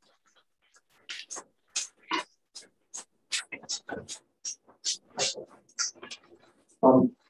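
Footsteps cross the room.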